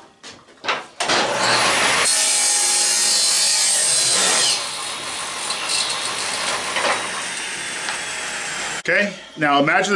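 A table saw whines loudly as it cuts through wood.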